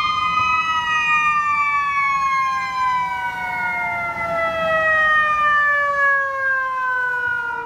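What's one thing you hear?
A fire engine's engine rumbles as it drives past.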